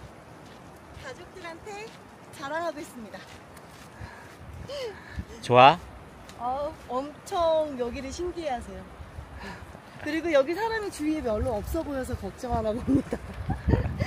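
A young woman talks with animation close by, outdoors.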